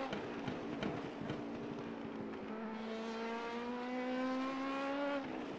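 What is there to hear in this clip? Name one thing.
A racing car engine roars and climbs steadily in pitch as the car speeds up.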